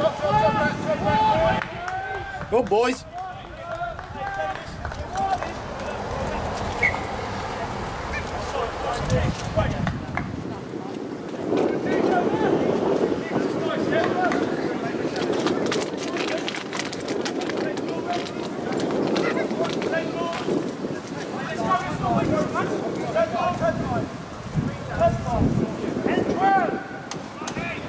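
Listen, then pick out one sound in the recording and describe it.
Spectators on the sideline shout and cheer outdoors.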